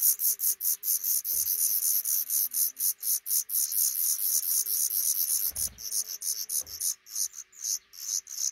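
Nestling birds chirp rapidly and shrilly, close by.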